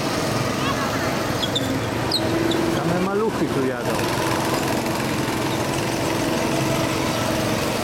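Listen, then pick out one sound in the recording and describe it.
Go-kart engines buzz loudly as the karts speed past close by and fade away.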